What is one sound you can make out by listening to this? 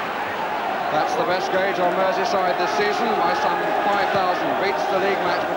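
A football crowd chants in unison.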